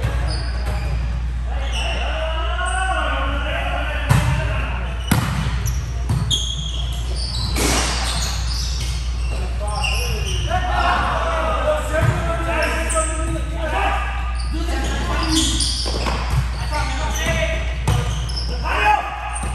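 Young men call out and shout to each other during play.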